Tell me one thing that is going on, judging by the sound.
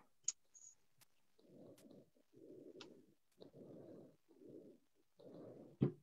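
Scissors snip through a ribbon.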